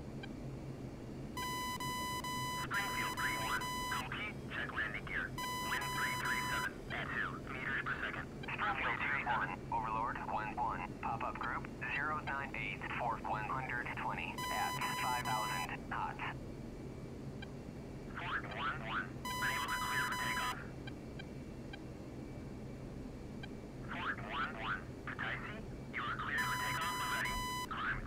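A jet engine drones, heard from inside the cockpit.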